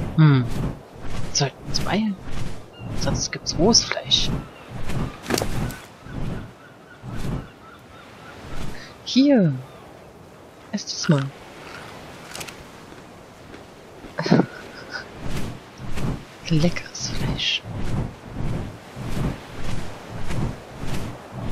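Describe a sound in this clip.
Large wings flap with steady, rhythmic whooshes.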